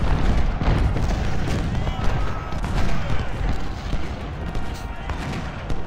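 Muskets fire in rapid, crackling volleys.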